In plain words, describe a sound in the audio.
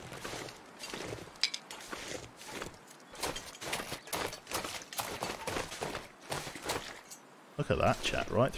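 Footsteps crunch through snow at a steady pace.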